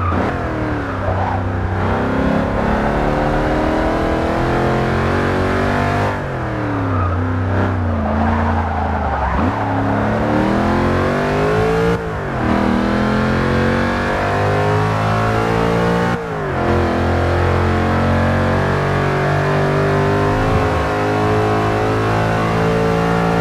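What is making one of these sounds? A supercharged V8 supercar engine accelerates at full throttle, its pitch climbing in each gear.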